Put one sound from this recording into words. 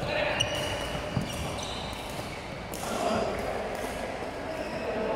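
Many distant voices and sounds echo around a large hall.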